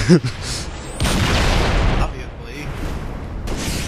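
An energy weapon fires crackling, buzzing shots.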